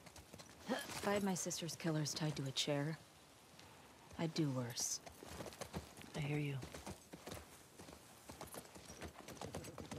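A horse's hooves clop slowly on wet ground.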